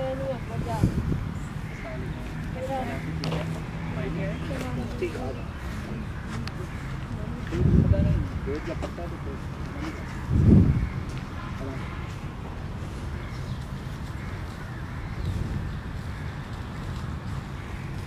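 People chatter in the distance outdoors.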